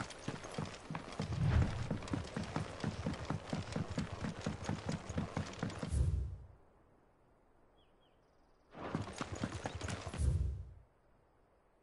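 Boots thud fast across wooden planks.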